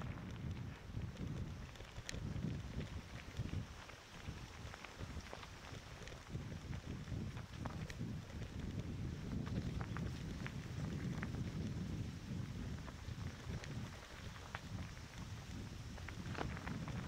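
Wind buffets the microphone steadily with a low rumble.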